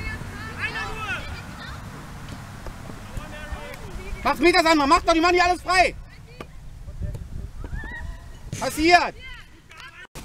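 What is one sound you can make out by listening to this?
Players, young men, shout to each other across an open outdoor field.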